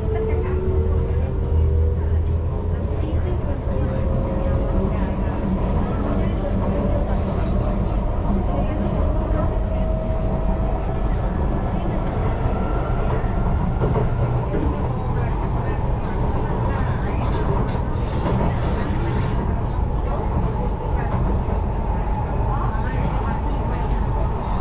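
A train rumbles and hums steadily as it rolls along the track.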